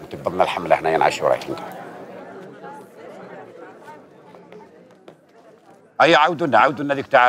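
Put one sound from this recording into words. A man speaks loudly and forcefully nearby.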